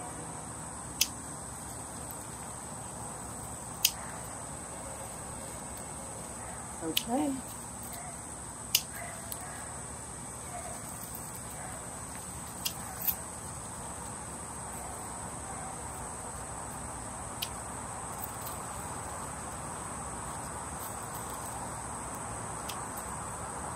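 Garden shears snip plant stems with sharp clicks.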